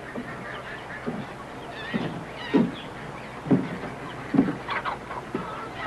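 Boots thump on wooden boards.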